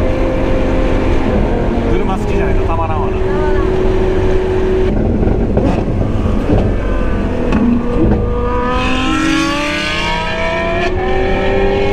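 A car engine hums and revs, its pitch climbing as the car speeds up.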